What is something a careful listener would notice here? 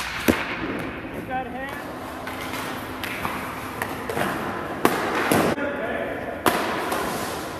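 A hockey stick slaps pucks with sharp cracks.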